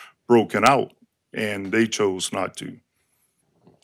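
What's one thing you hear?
A middle-aged man speaks firmly into a microphone.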